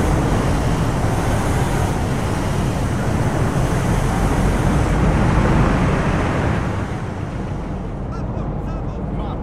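An armoured vehicle's engine rumbles loudly as it drives past.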